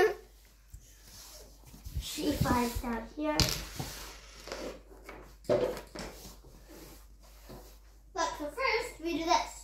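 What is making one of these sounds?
Plastic toys knock softly on a wooden floor.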